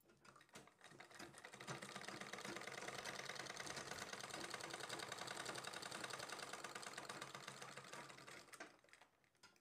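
A sewing machine whirs and rattles softly.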